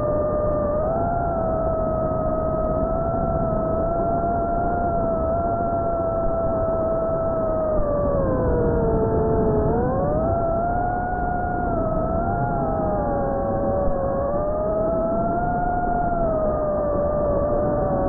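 A model aircraft's motor whines in flight, its pitch rising and falling.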